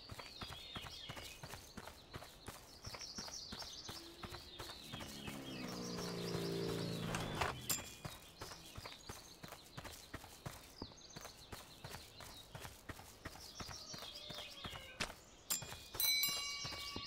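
Grass is cut with a rapid whirr.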